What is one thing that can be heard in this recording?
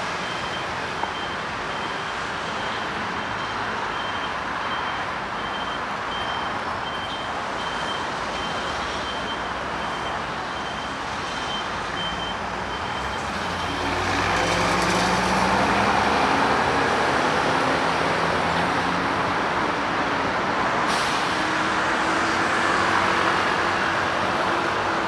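City traffic hums steadily nearby outdoors.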